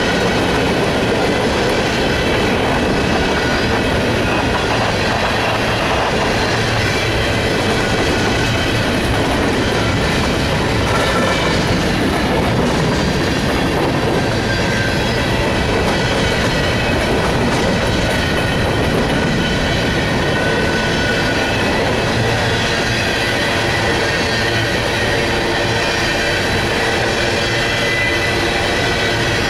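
Freight cars of a long train rumble and clatter past close by.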